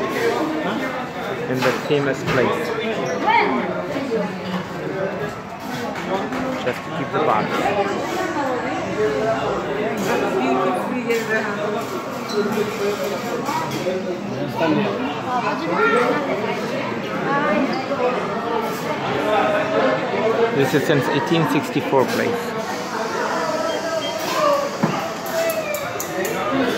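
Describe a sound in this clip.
A crowd of men and women chatter all around in a busy room.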